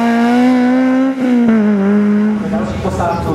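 A rally car's engine roars as it speeds past.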